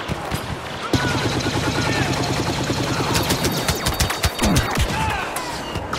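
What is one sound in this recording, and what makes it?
Blaster rifles fire in rapid bursts.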